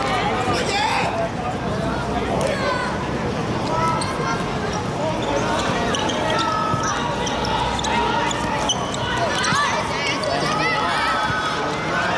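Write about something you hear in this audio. Young players shout to each other on the pitch.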